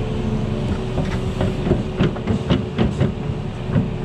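Clods of soil and stones thud and clatter from an excavator bucket.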